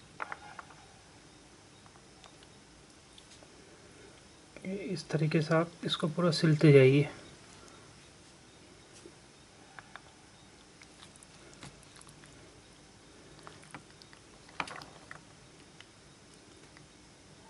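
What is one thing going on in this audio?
Pomegranate seeds patter softly onto a wooden board.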